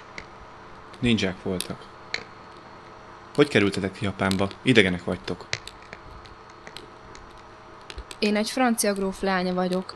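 A young man speaks close by in short bursts with pauses.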